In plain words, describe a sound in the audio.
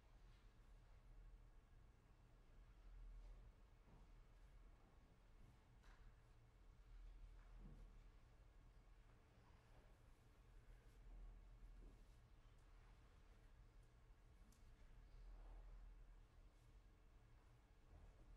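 A grand piano plays softly in a reverberant hall.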